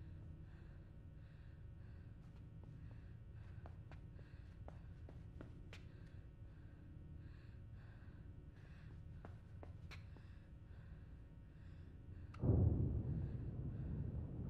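Footsteps patter softly on a hard floor.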